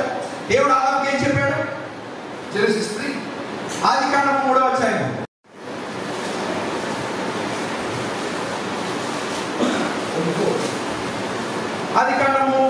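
A man speaks through a microphone, heard over a loudspeaker.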